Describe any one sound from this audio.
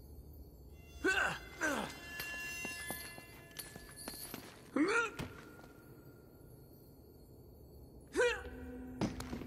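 A rope creaks as it swings under a climber's weight.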